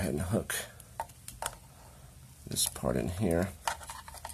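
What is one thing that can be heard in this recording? A plastic plug clicks as it is pushed into a socket.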